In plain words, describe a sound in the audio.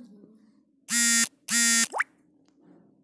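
A phone plays a short notification chime twice.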